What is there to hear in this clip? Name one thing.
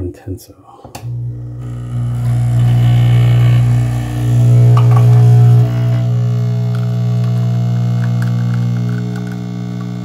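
A coffee machine hums and buzzes loudly as it pumps.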